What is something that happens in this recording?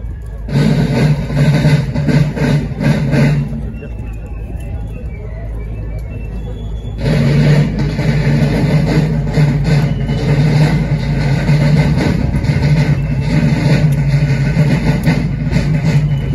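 Many boots march in step on pavement outdoors.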